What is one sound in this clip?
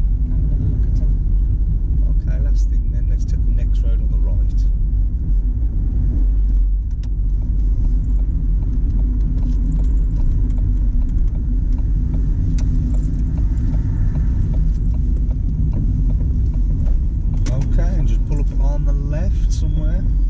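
A car engine hums with a low rumble of tyres on the road.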